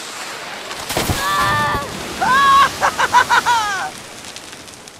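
A man screams loudly in a long, wavering cry.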